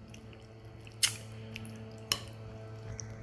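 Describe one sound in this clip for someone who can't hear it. A metal spoon clinks against a ceramic bowl.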